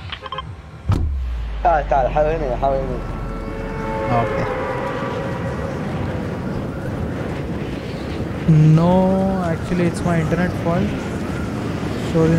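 Wind rushes steadily past a skydiving game character.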